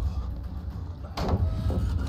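A blade whooshes through the air in a sudden swing.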